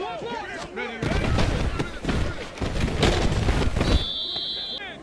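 A large crowd roars in a stadium.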